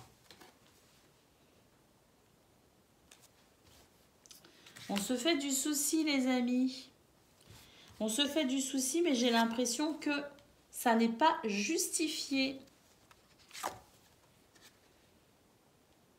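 Playing cards slide and tap softly as they are laid down on a table.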